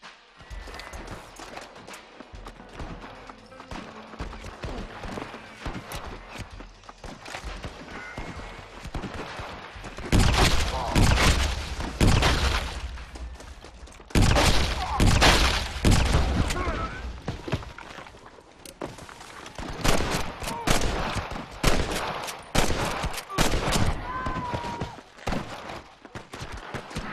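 Footsteps crunch on dry ground as someone runs.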